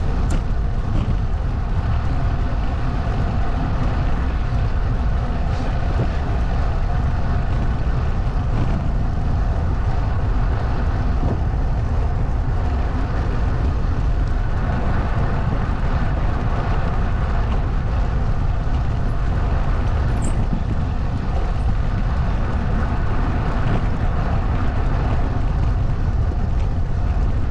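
Tyres roll steadily over asphalt.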